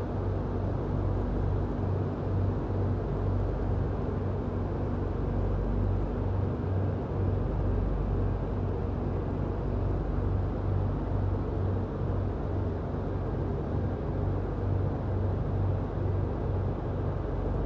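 Electrical machinery hums steadily with a low, pulsing throb.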